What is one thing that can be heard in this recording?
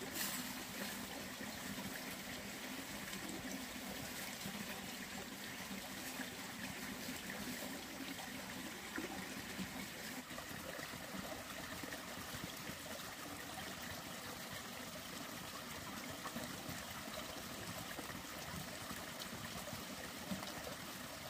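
Water swishes and splashes as hands scrub in a pot.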